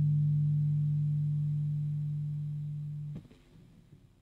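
A bass guitar note rings out steadily and slowly fades, then is cut short.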